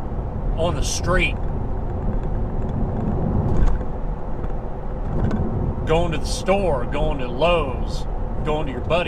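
A car engine hums steadily with road rumble from inside the cabin.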